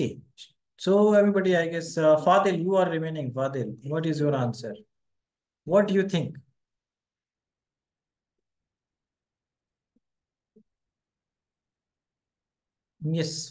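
A man speaks calmly into a microphone, explaining, with pauses.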